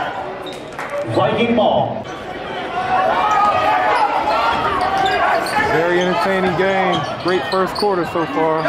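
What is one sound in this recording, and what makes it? A crowd in a large echoing gym murmurs and cheers.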